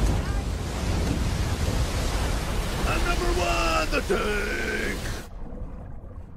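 A large wave roars and crashes loudly.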